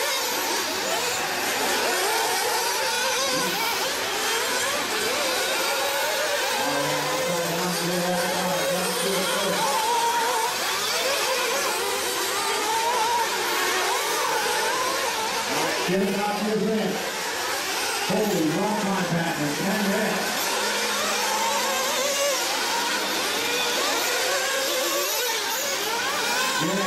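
Small model car engines whine loudly at high revs, rising and falling as the cars race.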